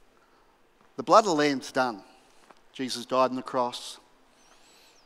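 A middle-aged man speaks with animation through a microphone in a large hall.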